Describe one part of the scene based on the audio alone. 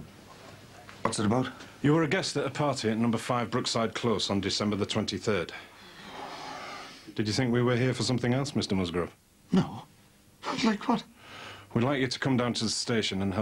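A man speaks firmly and sternly nearby.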